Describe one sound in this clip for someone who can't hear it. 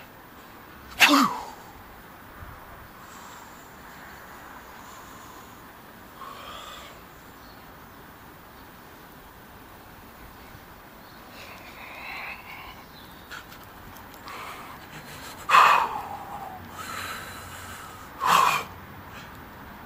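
A man breathes out forcefully in short, loud bursts close by.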